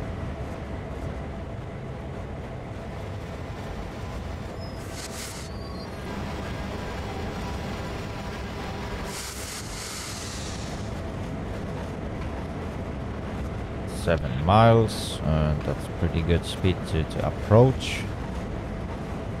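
A locomotive diesel engine rumbles steadily.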